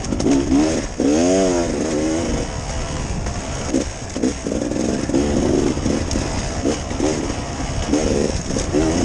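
A dirt bike engine revs hard up and down close by.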